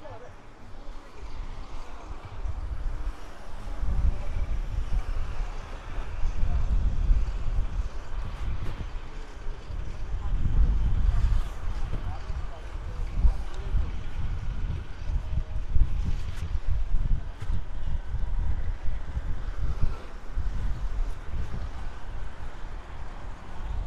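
Wind buffets outdoors with low rumbling gusts.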